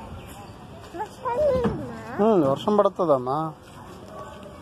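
A little girl shouts and sings loudly in a high voice, close by.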